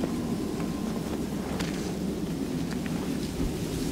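A brick scrapes as it is lifted from the ground.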